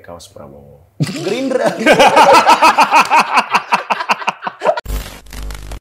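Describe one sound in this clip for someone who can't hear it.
Several men laugh loudly together.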